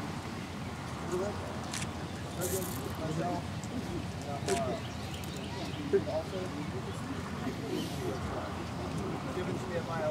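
A man reads out formally to a gathering outdoors.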